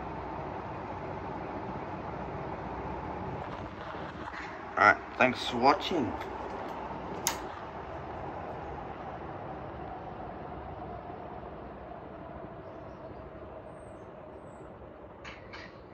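Ceiling fans whir and hum steadily.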